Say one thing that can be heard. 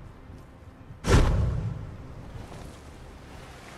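A game character splashes into water.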